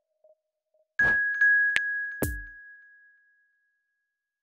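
A bright electronic chime rings out once.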